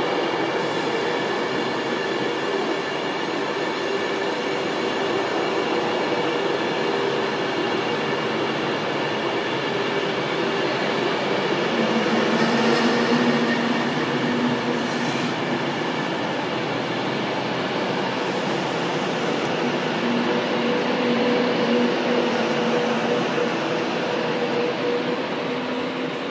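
A train's electric motors whine as it slowly pulls away.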